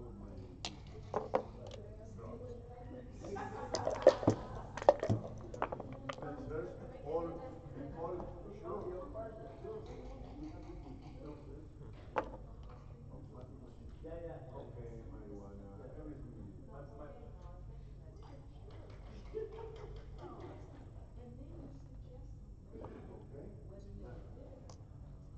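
Game pieces click and slide on a wooden board.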